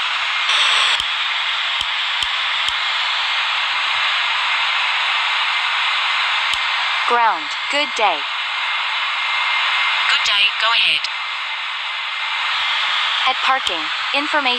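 A jet airliner's engines hum steadily.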